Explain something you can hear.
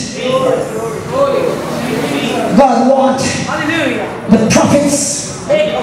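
A woman sings through a microphone in a room with some echo.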